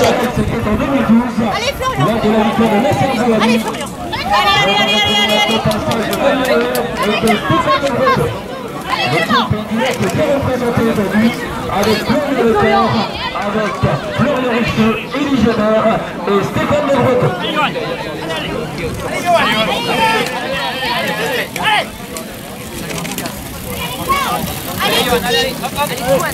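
A crowd of spectators chatters close by outdoors.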